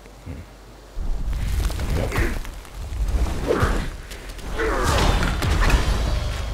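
Heavy blows and thuds of combat sound in a game.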